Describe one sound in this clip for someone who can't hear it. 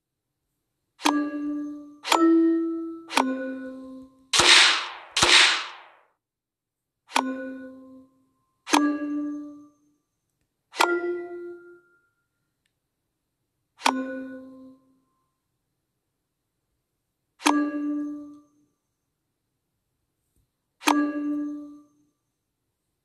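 Game chimes ring out as pieces merge.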